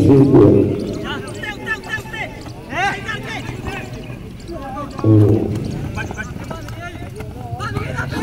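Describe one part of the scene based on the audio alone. A football is kicked on grass.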